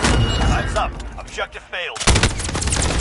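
A rifle fires rapid, loud shots close by.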